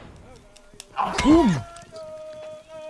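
A deer lets out a short, sharp cry.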